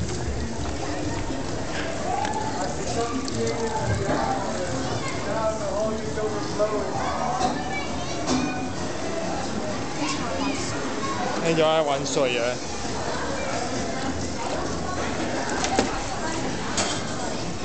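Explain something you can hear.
Children chatter and call out in a busy echoing room.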